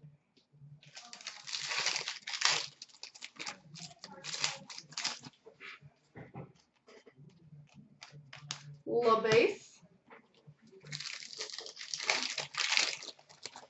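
A foil wrapper crinkles and tears as a card pack is opened by hand.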